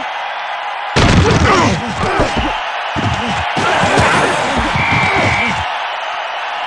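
Football players collide in a tackle with heavy thuds.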